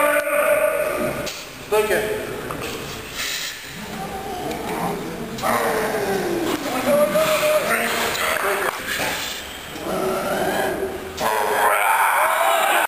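Men shout encouragement loudly in a large echoing hall.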